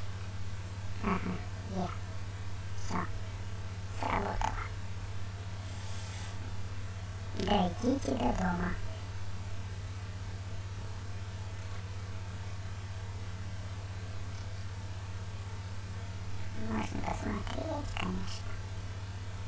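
A young man speaks calmly and close into a headset microphone, in short bursts.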